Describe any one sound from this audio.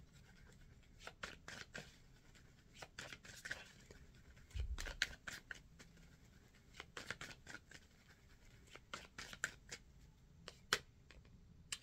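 Cards shuffle and riffle softly.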